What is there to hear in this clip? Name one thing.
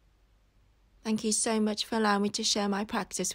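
A young woman speaks calmly and softly, close to a microphone.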